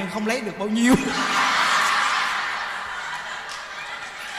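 A crowd of women laughs heartily nearby.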